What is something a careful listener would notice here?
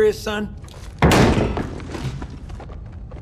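A hard object clatters down onto a metal surface.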